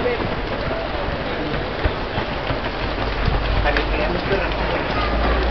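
A crowd of runners chatters and calls out nearby.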